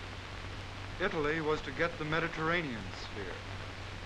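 A man speaks.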